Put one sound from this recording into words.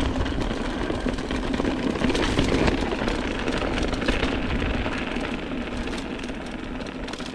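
Mountain bike tyres crunch and rattle over a rough dirt trail.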